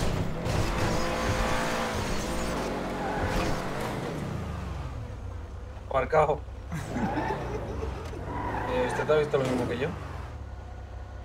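A car engine revs loudly and then settles to a low rumble.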